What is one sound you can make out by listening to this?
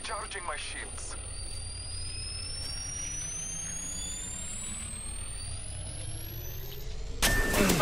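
An electronic whine slowly rises in pitch as a device charges up.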